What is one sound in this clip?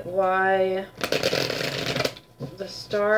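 Playing cards riffle and shuffle close by.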